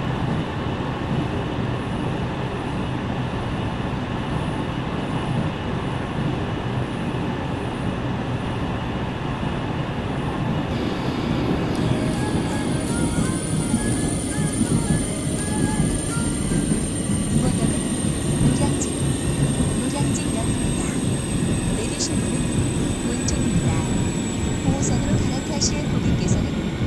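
A train rumbles steadily along its tracks, growing a little louder partway through.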